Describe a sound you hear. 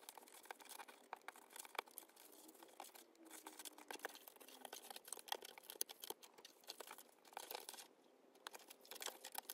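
Plastic mesh crinkles and rustles under fingers.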